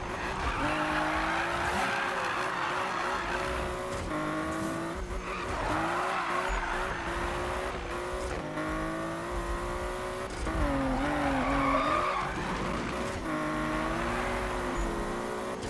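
A car engine roars at high revs, rising and falling with gear shifts.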